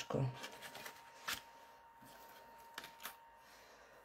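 Paper pieces rustle and tap softly as they are placed on a card.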